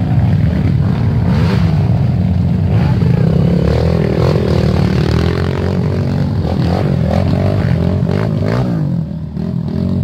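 Dirt bike engines rev and sputter loudly close by.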